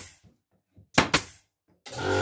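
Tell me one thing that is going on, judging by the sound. A staple gun fires staples into wood with sharp bangs.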